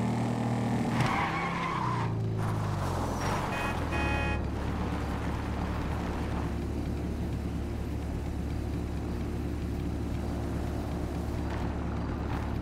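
A cruiser motorcycle engine winds down and settles into an idle.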